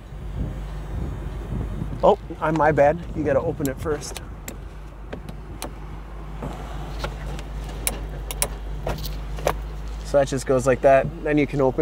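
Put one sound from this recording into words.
Plastic trim clicks and knocks under a gloved hand.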